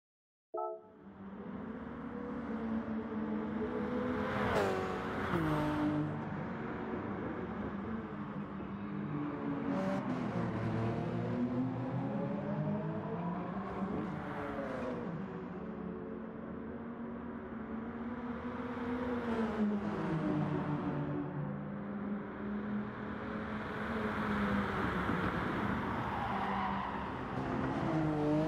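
A racing car engine roars and whines, rising and falling in pitch as it shifts gears.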